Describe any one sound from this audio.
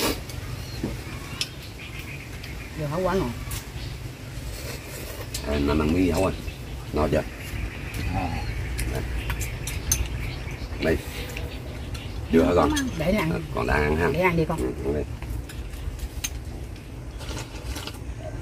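Dishes and utensils clink softly.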